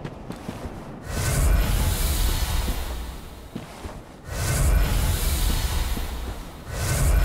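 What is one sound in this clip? A fireball bursts into a loud roaring whoosh.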